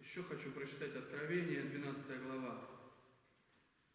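A man speaks calmly into a microphone in an echoing room.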